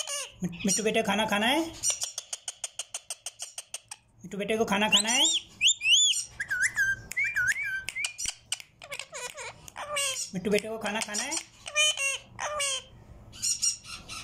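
A parrot chatters and squawks loudly close by.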